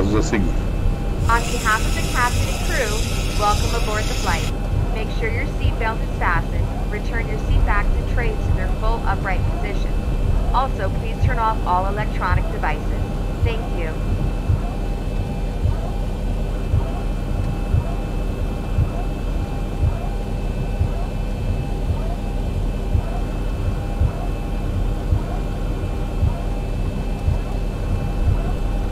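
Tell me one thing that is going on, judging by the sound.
A jet engine hums steadily at idle.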